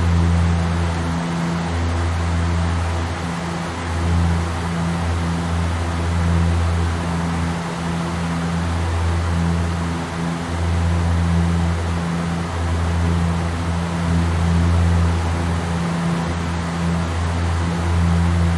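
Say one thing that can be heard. Aircraft engines drone steadily with a low hum.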